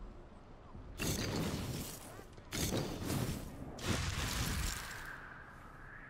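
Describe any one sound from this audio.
A fiery burst of energy roars and crackles loudly.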